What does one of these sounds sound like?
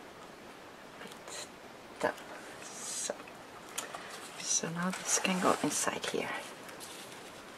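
Paper rustles and crinkles close by as hands handle it.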